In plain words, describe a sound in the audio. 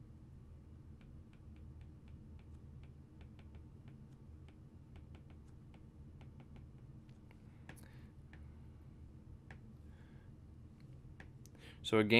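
A stylus taps softly on a tablet.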